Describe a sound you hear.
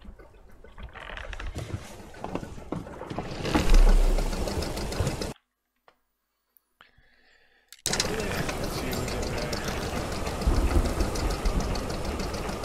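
Water splashes and laps against a wooden boat.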